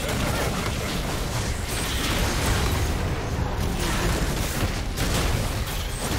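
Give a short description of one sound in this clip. Game spells burst and crackle in a fight.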